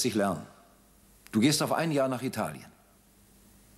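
A man speaks quietly and calmly close by.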